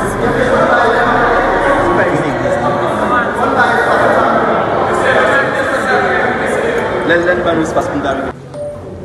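A crowd of men and women talks loudly all at once nearby.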